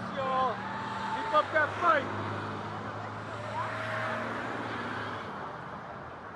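Vehicles drive past on a road outdoors.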